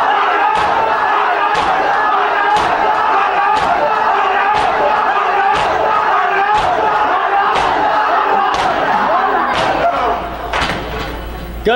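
Hands beat on chests in a steady rhythm, about once a second.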